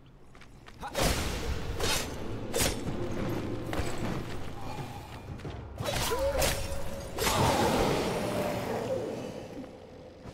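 Blasts and clashing sounds of a fight burst out loudly.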